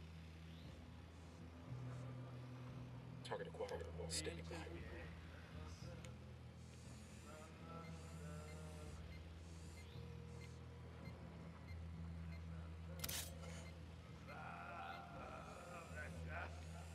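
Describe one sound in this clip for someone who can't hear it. A small drone's motors hum steadily.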